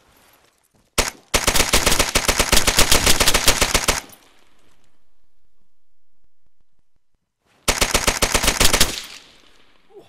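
A rifle fires rapid automatic bursts close by.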